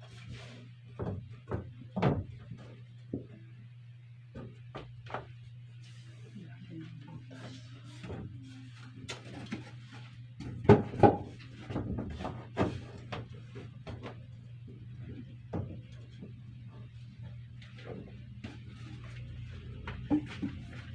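A person knocks and bangs on wooden boards overhead.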